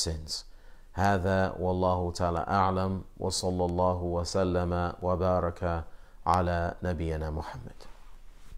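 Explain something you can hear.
A man speaks calmly into a clip-on microphone, close by.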